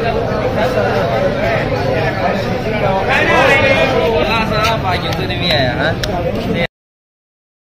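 A crowd of men talk over one another outdoors.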